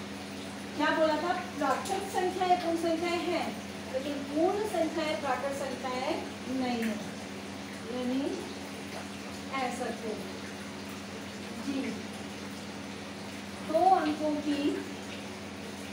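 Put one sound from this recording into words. A woman speaks calmly nearby, explaining in pauses.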